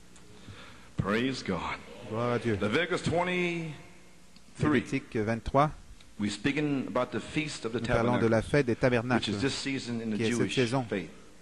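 A middle-aged man speaks with animation through a microphone in an echoing hall.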